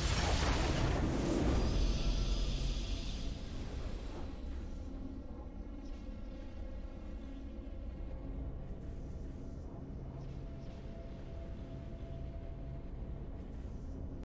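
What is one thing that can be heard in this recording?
A triumphant musical fanfare plays and slowly settles into sustained notes.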